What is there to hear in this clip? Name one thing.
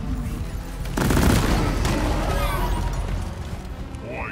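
Gunfire rattles rapidly in quick bursts.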